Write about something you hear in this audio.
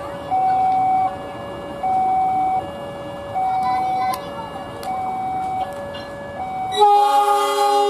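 A locomotive horn honks in two alternating tones.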